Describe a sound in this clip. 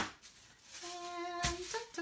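Thin paper sheets rustle and crinkle as a hand lifts them.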